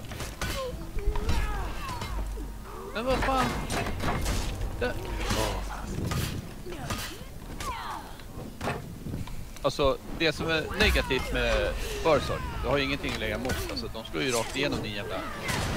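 Swords clash and strike in a video game fight.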